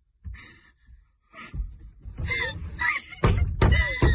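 A door slowly creaks open.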